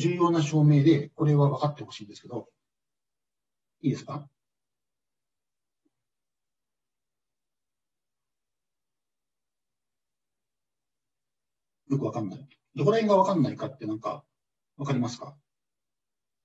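A man speaks calmly through a microphone, in short bursts with long pauses.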